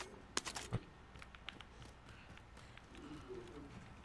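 Footsteps patter softly on hard ground.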